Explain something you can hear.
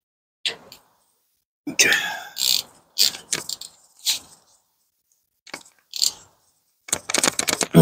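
A metal wrench clinks against a brake part.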